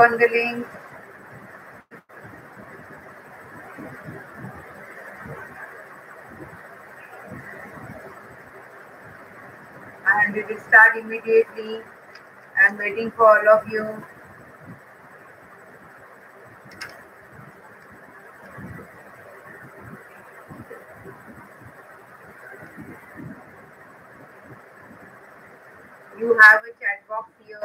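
A woman speaks calmly close to a microphone, in short bursts with long pauses.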